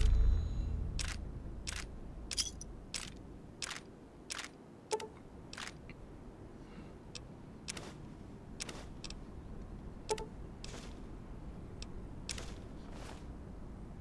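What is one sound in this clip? Soft interface clicks tick one after another as a game menu list scrolls.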